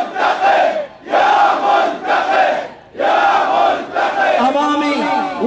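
A large crowd of men chants loudly in rhythmic bursts outdoors.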